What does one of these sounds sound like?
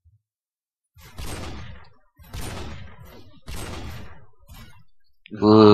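A rifle fires loud booming shots that echo off walls.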